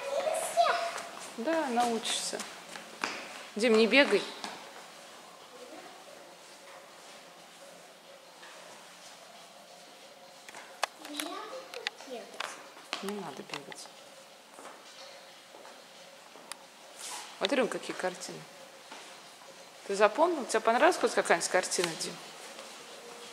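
A young child talks nearby in an echoing hall.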